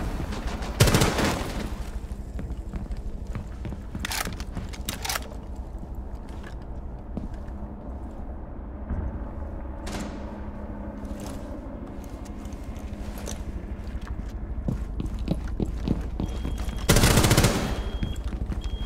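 Rapid gunfire bursts out loudly in short volleys.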